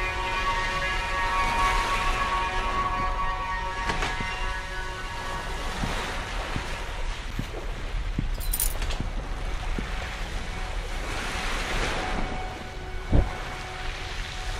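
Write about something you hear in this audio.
Soft footsteps creep across a hard floor.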